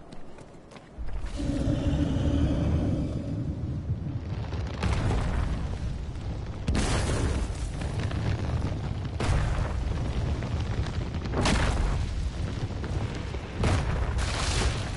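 A strong wind roars in heavy gusts.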